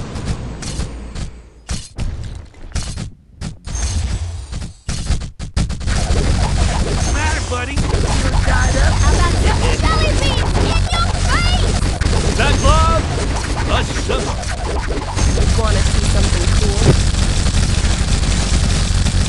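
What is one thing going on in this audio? Game sound effects pop and blast rapidly and continuously.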